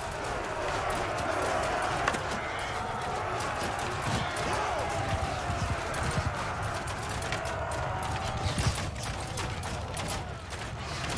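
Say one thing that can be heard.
A large crowd of men shouts and yells in a battle.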